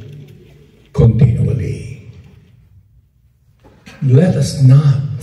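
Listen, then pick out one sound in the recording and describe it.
A man speaks into a microphone over loudspeakers in a large room.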